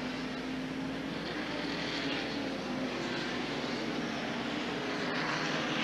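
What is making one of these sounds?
Race car engines roar loudly as the cars speed past.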